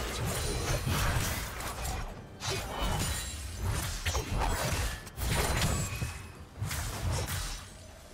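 Video game spell effects whoosh and crash in quick bursts.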